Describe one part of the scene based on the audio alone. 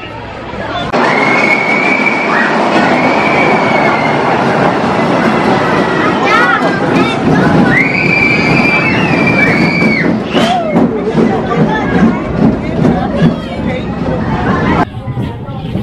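A roller coaster train rumbles along its track and squeals to a stop.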